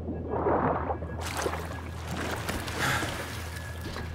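Water splashes and drips as a swimmer breaks the surface.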